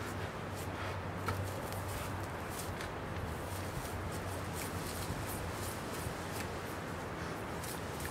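Leaves rustle as a tree branch shakes again and again.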